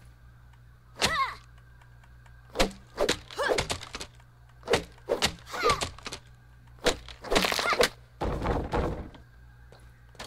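An axe chops repeatedly at a thick plant stalk.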